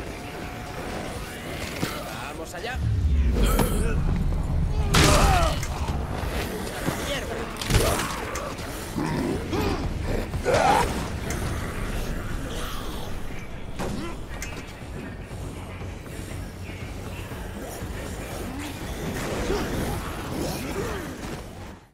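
Zombies groan and moan in a crowd.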